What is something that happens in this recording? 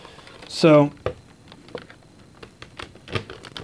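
Hands handle a plastic toy, making light clicks and rattles.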